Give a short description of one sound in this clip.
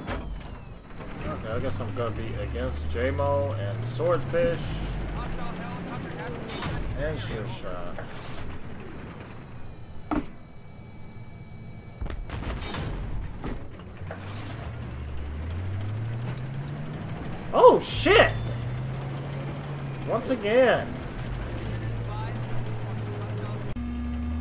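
A tank engine rumbles and revs up.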